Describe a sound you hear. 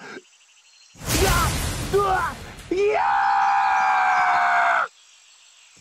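A man cries out and screams in alarm.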